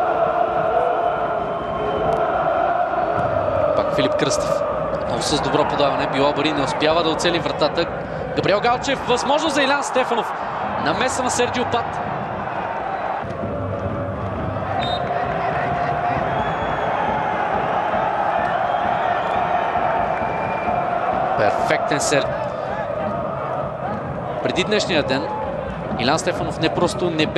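A stadium crowd chants and cheers steadily.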